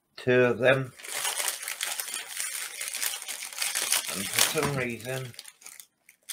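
A plastic wrapper crinkles and rustles as it is torn open.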